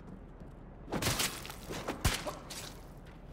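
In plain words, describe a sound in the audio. A blade stabs into a body with a loud, wet thud.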